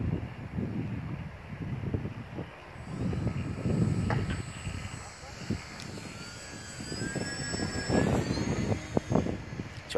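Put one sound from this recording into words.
A radio-controlled model plane's engine drones as the plane flies past.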